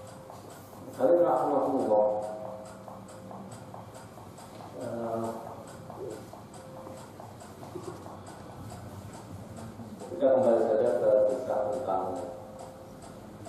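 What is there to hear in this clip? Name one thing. A middle-aged man speaks slowly and calmly into a microphone, in short phrases.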